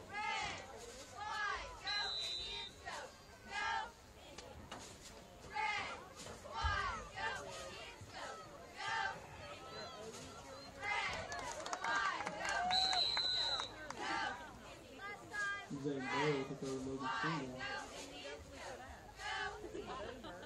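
A crowd of spectators cheers and shouts from the stands outdoors.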